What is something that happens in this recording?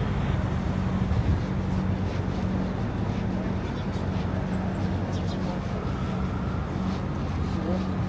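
A van's engine idles nearby with a low hum.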